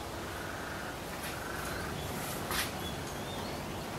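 A seabird calls overhead.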